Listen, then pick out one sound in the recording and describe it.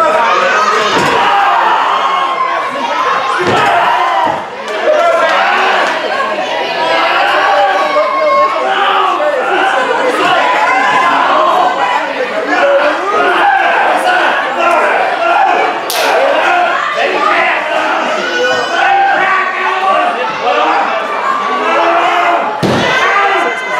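A body thumps onto a wrestling mat.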